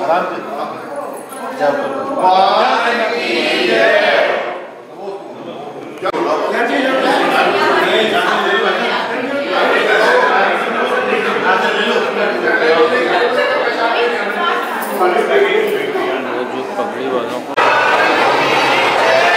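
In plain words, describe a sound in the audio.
A crowd of men chant and sing together close by.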